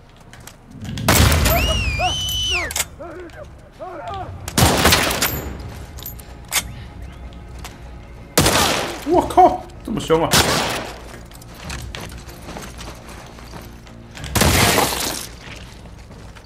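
Gunshots bang loudly a few times.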